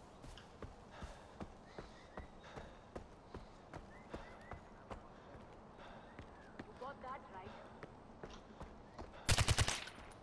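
Footsteps crunch steadily over gravel and stone.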